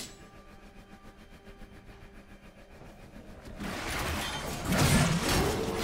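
Game fight sounds clash with spell effects and hits.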